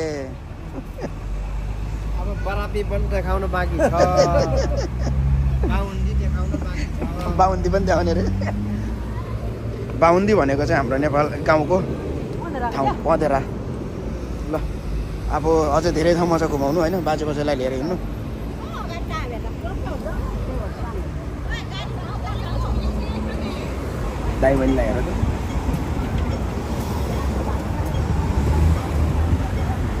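Traffic rumbles along a street outdoors.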